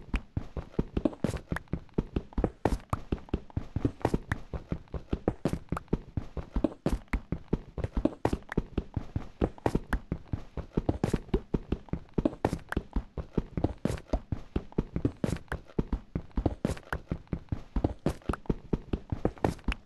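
A pickaxe chips rapidly at stone, with quick repeated crunching knocks.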